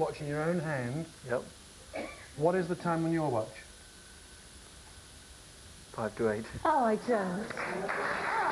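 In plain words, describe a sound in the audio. A man talks with animation, close by.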